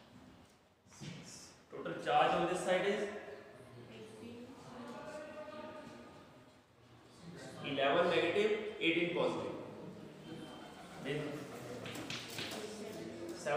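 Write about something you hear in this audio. A man explains calmly, heard close by.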